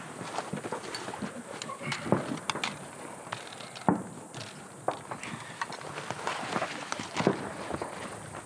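Footsteps crunch on dry gravel.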